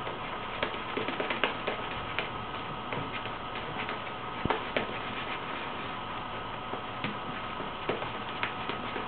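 A shaving brush swishes and scrubs lather against a man's face.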